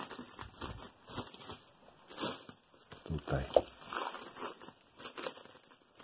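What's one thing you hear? Plastic wrap crinkles as it is peeled off.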